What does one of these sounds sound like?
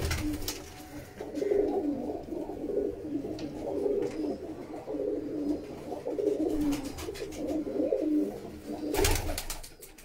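Pigeons coo softly in a steady, throbbing chorus.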